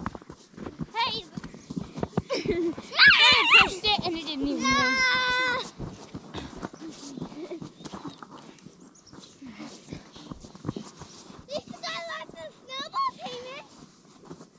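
A young child shouts and squeals excitedly outdoors.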